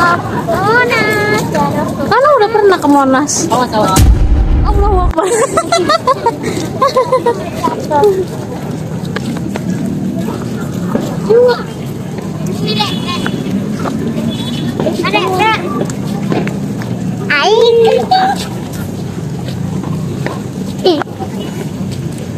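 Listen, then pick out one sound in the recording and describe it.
Young children shout and laugh playfully close by.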